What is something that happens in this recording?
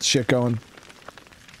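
A young man speaks briefly and close into a microphone.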